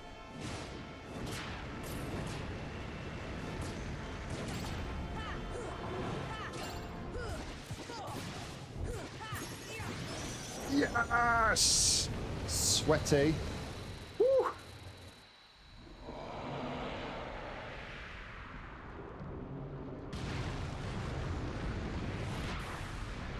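Video game battle effects whoosh and clash.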